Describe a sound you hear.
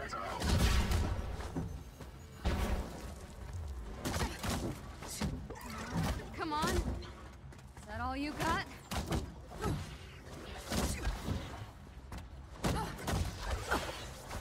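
Energy blasts zap and whoosh.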